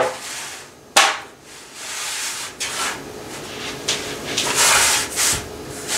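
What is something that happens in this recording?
Parchment paper crinkles and rustles.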